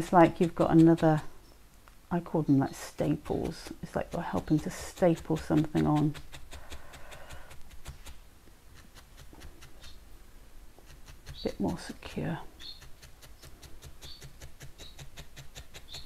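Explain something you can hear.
A felting needle pokes rapidly and repeatedly into a ball of wool with soft ticking sounds.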